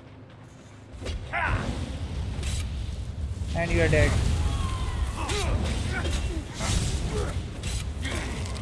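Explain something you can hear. Magic spells crackle and blast during a fight.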